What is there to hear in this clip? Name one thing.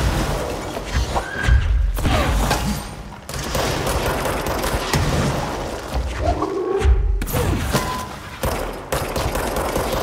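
Concrete chunks clatter and scatter.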